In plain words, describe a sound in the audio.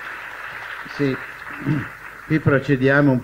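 An elderly man speaks into a microphone through loudspeakers.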